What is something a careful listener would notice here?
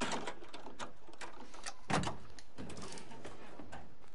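A car hood clunks and creaks open.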